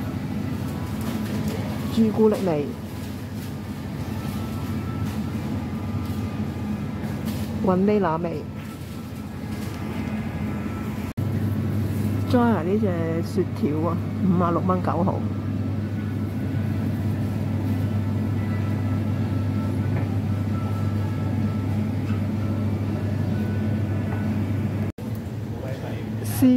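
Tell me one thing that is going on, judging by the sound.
A refrigerated cabinet hums steadily close by.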